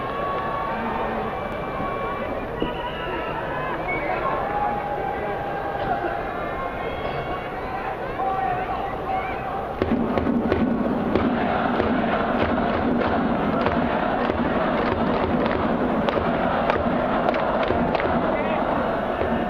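A large crowd murmurs and chants in a big echoing stadium.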